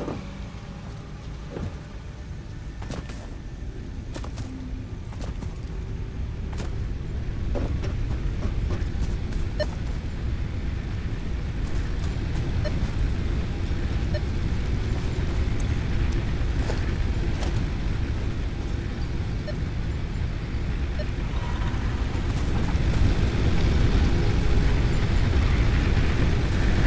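Machines hum and rumble steadily, growing louder.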